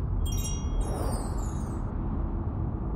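A bright game reward chime rings out and fades.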